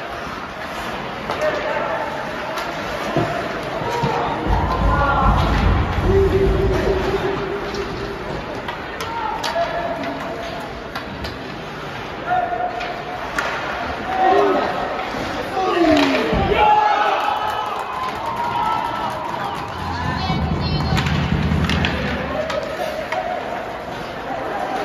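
Young men talk nearby in a large echoing arena.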